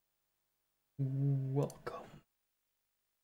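A young man speaks loudly into a close microphone, drawing out a sound.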